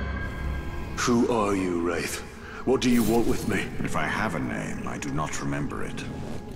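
A man speaks calmly in a low, echoing voice.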